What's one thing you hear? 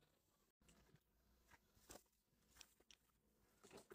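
Plastic wrap crinkles under hands.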